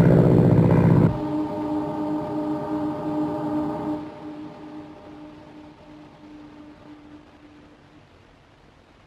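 A propeller plane's engine drones steadily, then fades away.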